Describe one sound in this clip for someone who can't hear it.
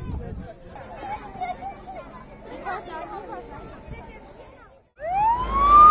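Children chatter outdoors.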